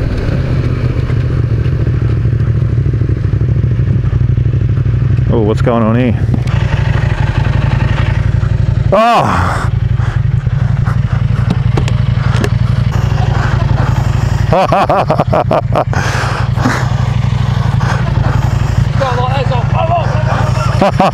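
A motorcycle engine idles with a steady low rumble.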